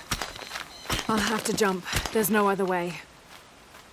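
A young woman speaks quietly and breathlessly, close by.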